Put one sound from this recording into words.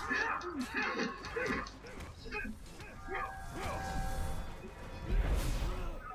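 Swords clash and armour clanks in a fight.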